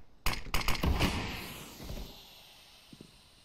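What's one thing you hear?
A smoke grenade hisses.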